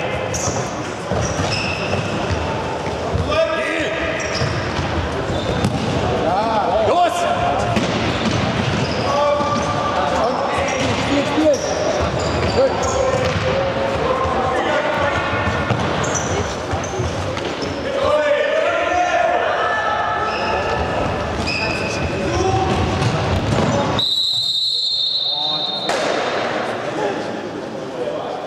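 Young players shout and call to each other across the hall.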